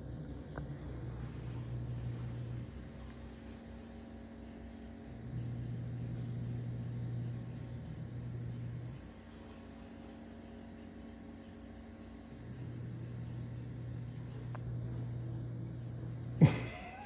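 A dog growls low in long, steady rumbles.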